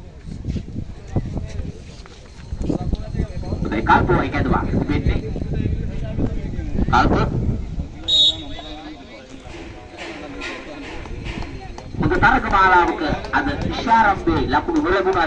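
Men call out and talk outdoors at a distance.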